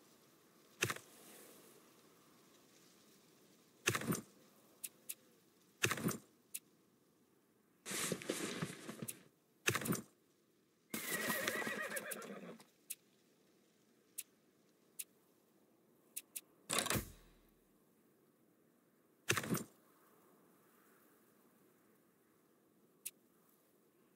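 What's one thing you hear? Short game interface clicks sound now and then.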